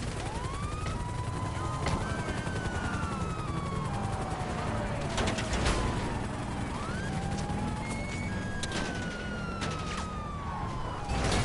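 A car engine rumbles steadily as the car drives.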